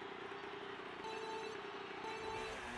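Electronic countdown beeps sound twice.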